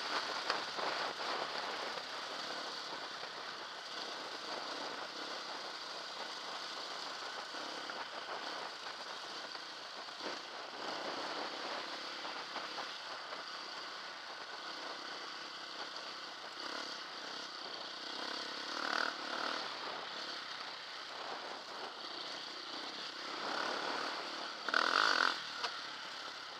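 A dirt bike engine drones up close, rising and falling as it rides.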